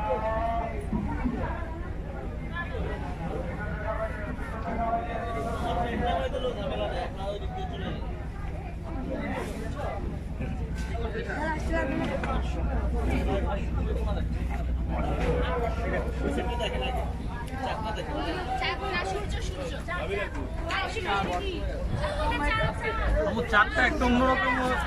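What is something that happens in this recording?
A boat motor rumbles steadily on the water.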